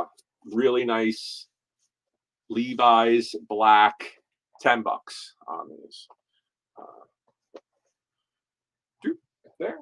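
Fabric rustles as a shirt is handled.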